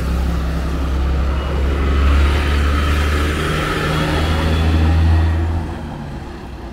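A heavy truck roars past close by.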